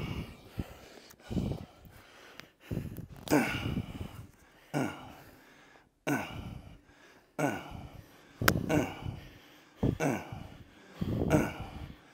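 A man grunts and exhales hard with effort, close by.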